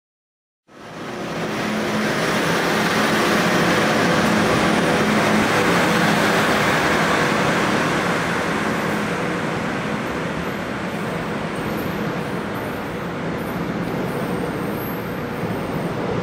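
A train rumbles along the rails and slowly pulls away.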